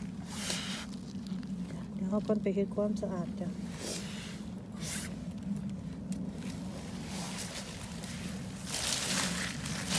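A gloved hand rustles through dry leaves and pine needles.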